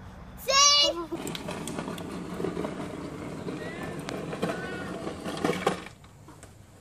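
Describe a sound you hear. Plastic toy wheels rumble on pavement.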